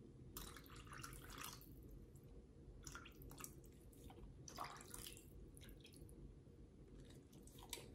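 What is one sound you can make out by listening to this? A dog licks and sniffs at food.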